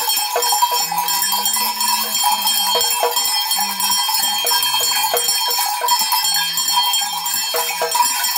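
Clusters of small bells and metal pieces jingle and clatter on a shaken stick.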